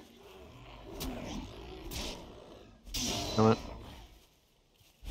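Blows land with sharp clashing hits in a fight.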